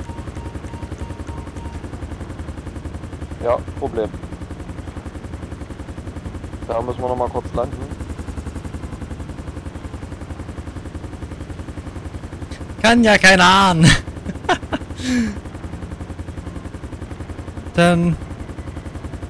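A helicopter's rotor chops steadily nearby.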